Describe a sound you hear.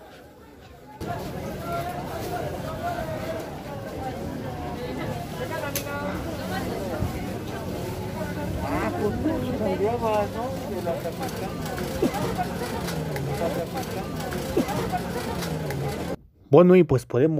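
A crowd of people chatters and murmurs in a busy street.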